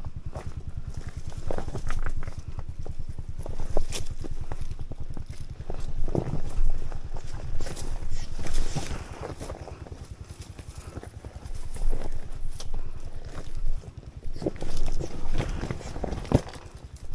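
Tyres crunch and knock over loose rocks.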